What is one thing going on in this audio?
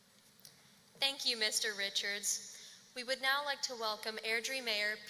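A young woman speaks through a microphone in a large echoing hall.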